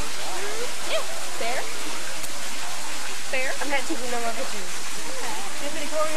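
A crowd of people chatters outdoors nearby.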